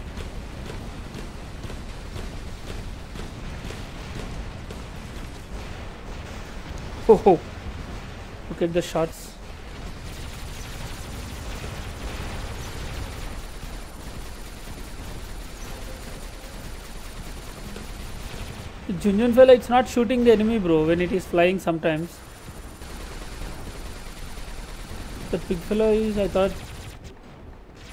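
Heavy weapons fire and blast in a steady, rumbling battle.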